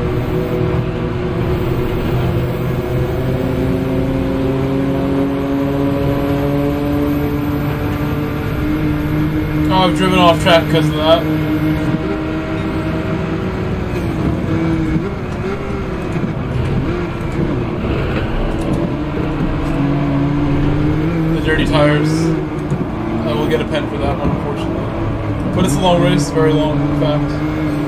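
A racing car engine roars steadily, its pitch rising and dropping with the gear changes.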